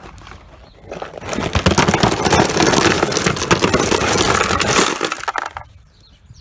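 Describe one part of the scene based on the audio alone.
A load of rocks pours with a loud rattling roar into a plastic barrel.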